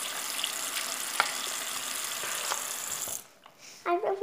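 Water runs from a tap in a steady splashing stream.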